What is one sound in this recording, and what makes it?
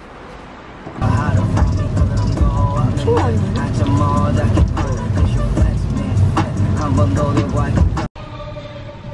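A car drives through heavy rain with a steady road rumble.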